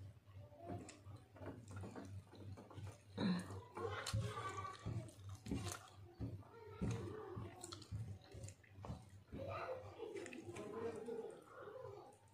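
A young woman chews food with wet smacking sounds close by.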